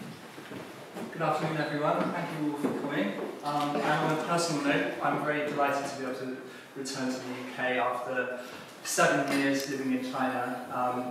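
A man speaks calmly to an audience in a room.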